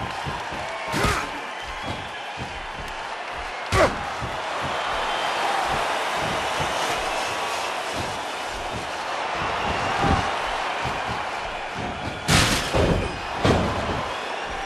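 Heavy blows thud and slam.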